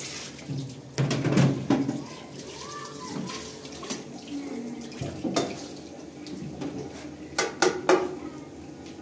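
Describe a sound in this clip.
Plastic dishes clatter and knock in a sink.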